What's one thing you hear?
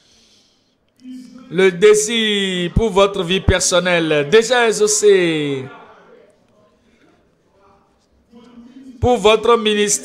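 An elderly man speaks forcefully into a microphone, heard through loudspeakers.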